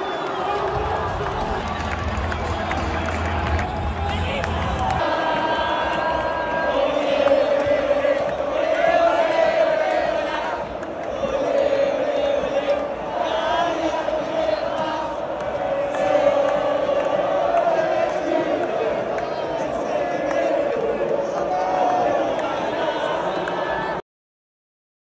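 A large stadium crowd sings and chants loudly together.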